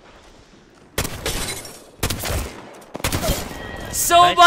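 A rifle fires in loud rapid bursts.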